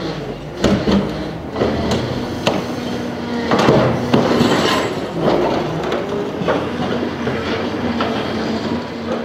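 A heavy machine engine rumbles steadily.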